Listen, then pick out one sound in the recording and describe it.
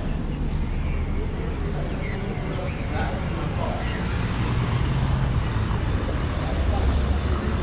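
Cars drive past on a nearby street with a steady low rumble.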